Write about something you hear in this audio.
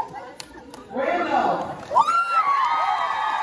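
An audience cheers and claps.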